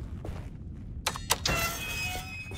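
A metal gate clanks and rattles open.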